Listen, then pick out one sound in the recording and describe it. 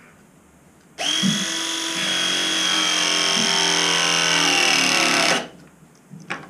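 A battery pipe press tool whines steadily as it crimps a fitting.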